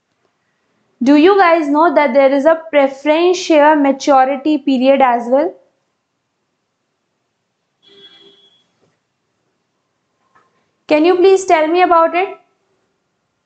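A young woman speaks calmly and clearly into a nearby microphone, pausing between phrases.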